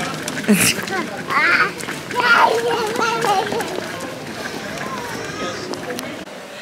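A small child's footsteps patter on cobblestones.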